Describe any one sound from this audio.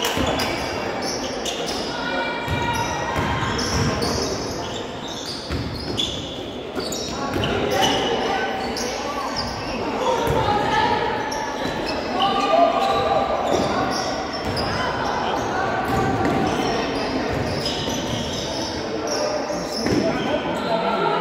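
Spectators talk and call out nearby.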